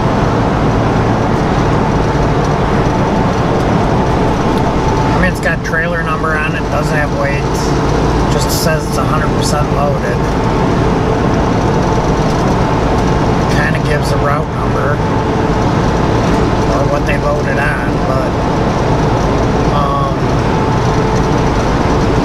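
Tyres roar on the highway.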